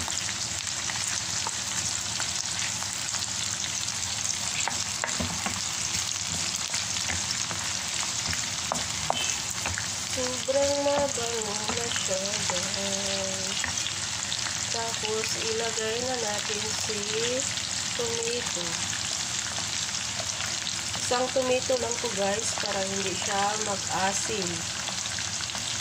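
A wooden spoon scrapes and stirs in a pan.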